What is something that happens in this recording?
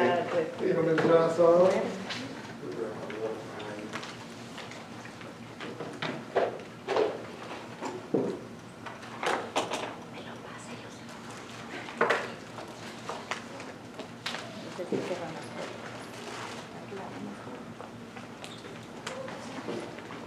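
A woman speaks to an audience in an echoing room.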